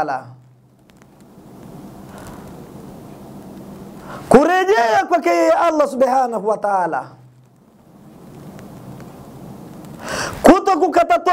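A man chants loudly and melodiously into a microphone, in long sung phrases.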